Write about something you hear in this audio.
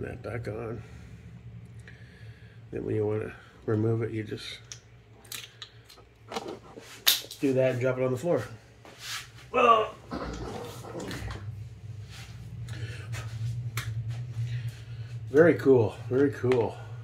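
Plastic parts click and rattle as a small device is handled up close.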